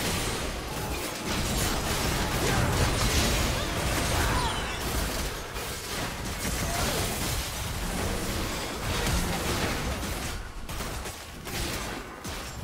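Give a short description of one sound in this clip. Magic spells blast and crackle in a busy fight.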